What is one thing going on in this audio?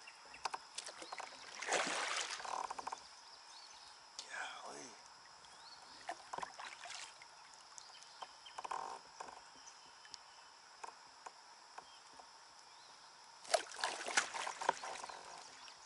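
A fishing line whizzes out on a cast.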